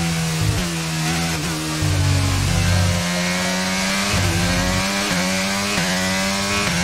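A racing car engine whines loudly, its pitch rising and dropping sharply with each gear change.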